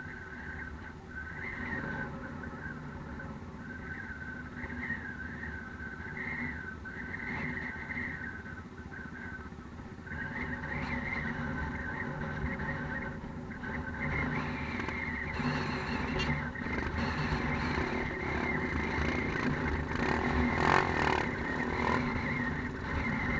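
A dirt bike engine idles and revs close by.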